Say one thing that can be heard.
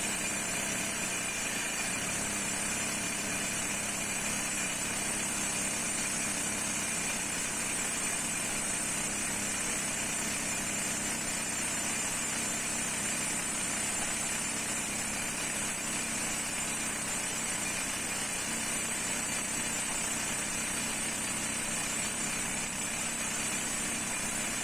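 A power drill grinds steadily into stone, with a loud whining roar.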